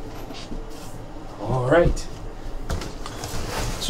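A cardboard box scrapes and thumps as it is moved.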